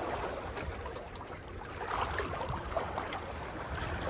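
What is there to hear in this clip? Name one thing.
A fishing reel clicks as its handle is turned.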